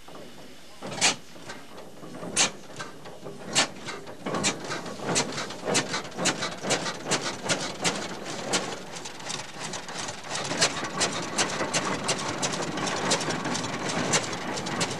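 An old engine starts and runs with loud, quickening knocking beats.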